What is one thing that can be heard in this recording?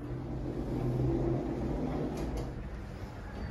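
Elevator doors slide open with a low rumble.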